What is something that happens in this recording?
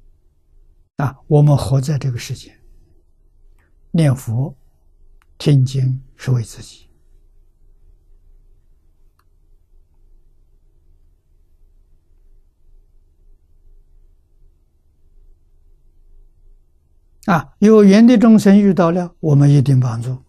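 An elderly man speaks calmly, with long pauses, close to a microphone.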